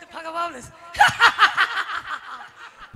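A crowd of people chatters and cheers.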